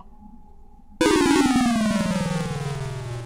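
A beeping game tone slides steadily downward in pitch.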